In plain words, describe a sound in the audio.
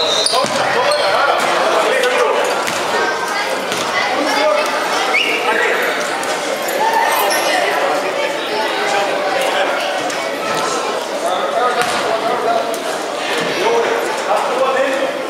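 Spectators talk and call out in an echoing hall.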